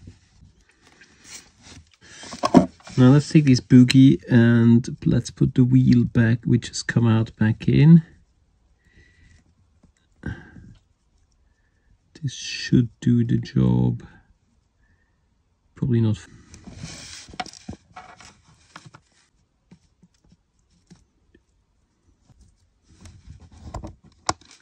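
Small metal parts click softly as they are handled.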